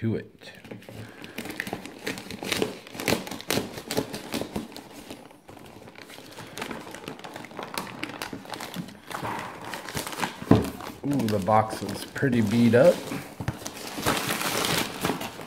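A plastic mailer tears and crinkles as it is pulled open.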